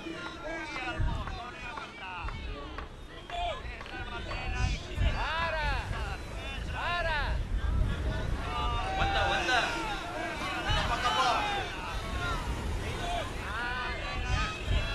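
Small waves wash onto a sandy shore.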